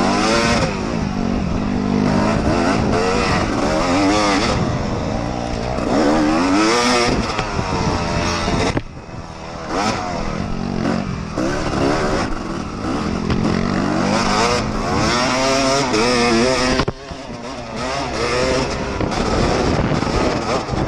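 Wind buffets loudly against the rider.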